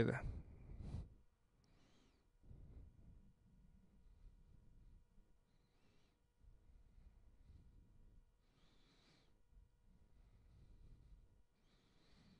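Thin wire rustles and scrapes faintly as it is wound by hand.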